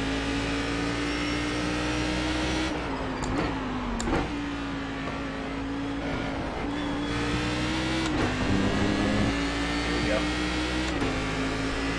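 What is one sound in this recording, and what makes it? A racing car engine drones steadily, its pitch dipping briefly as gears change.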